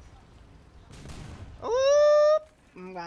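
A heavy explosion booms and crackles.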